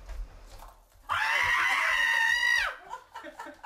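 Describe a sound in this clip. A woman screams loudly.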